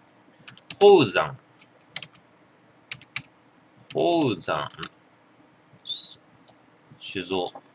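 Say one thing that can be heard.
Fingers tap quickly on a computer keyboard.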